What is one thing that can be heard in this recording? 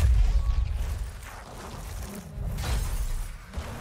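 Fires roar and crackle.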